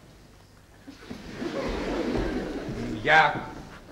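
An audience laughs in a hall.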